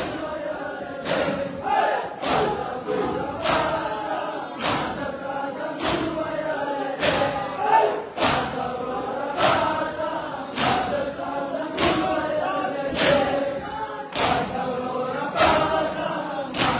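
A crowd of men chant loudly together in an echoing hall.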